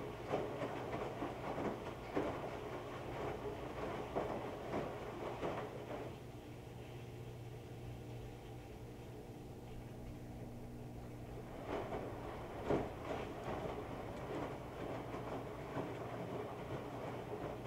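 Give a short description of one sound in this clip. Water sloshes inside a washing machine.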